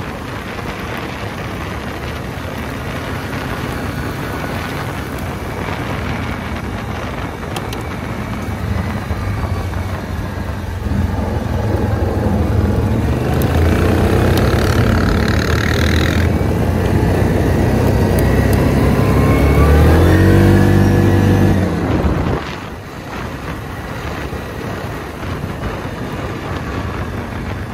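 Tyres crunch over a gravel track.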